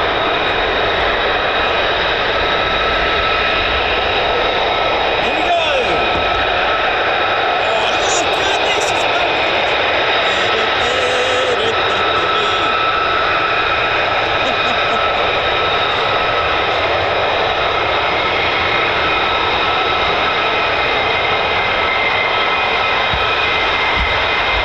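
Jet engines roar loudly and steadily.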